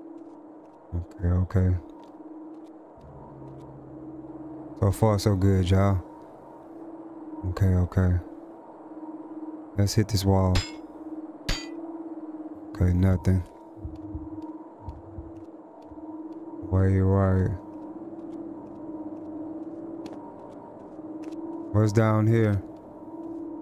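A man speaks in short bursts with animation, close to a microphone.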